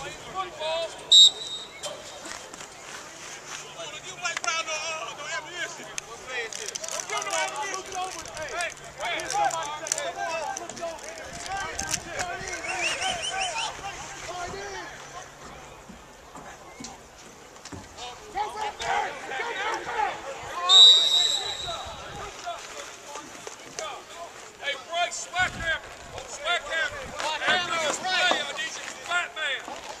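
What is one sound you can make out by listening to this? A crowd of men and women nearby talks, calls out and cheers.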